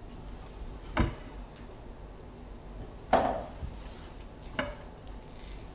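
A chair knocks and scrapes on the floor.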